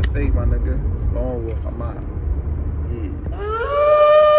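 A young man talks casually and close by.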